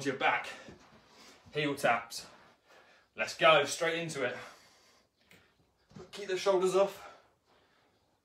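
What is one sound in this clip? A man speaks with animation in bursts between exertions.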